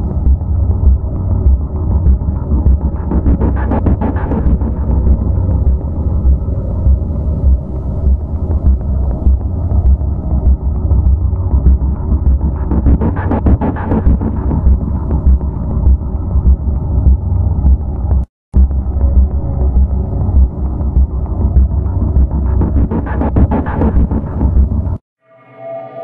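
Electronic game music plays with a heavy, pulsing beat.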